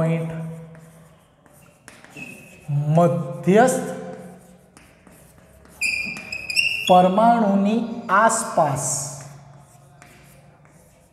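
Chalk scratches and taps on a blackboard.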